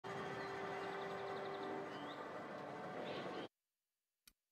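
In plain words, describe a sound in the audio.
Game ambience hums quietly.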